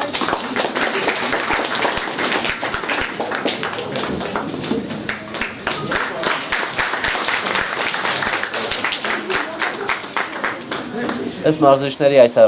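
A crowd of adults and children chatters in an echoing hall.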